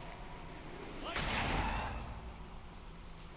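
Wind rushes past in a fast swooping dive.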